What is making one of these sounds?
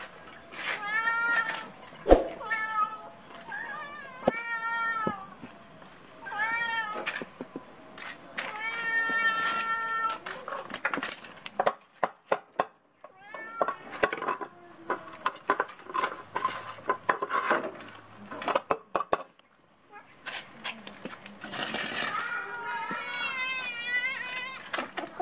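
Cats meow loudly and repeatedly close by.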